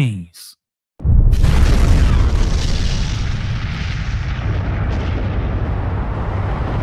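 A huge explosion booms and rumbles on.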